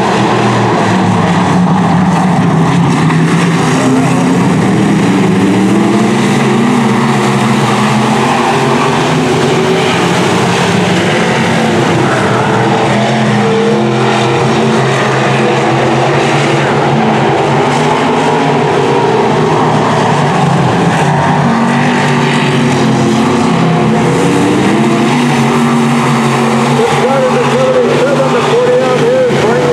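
Several race car engines roar loudly, rising and falling in pitch as the cars speed past.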